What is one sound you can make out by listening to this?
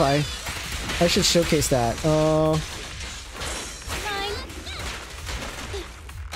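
Sword slashes and hits strike in quick bursts.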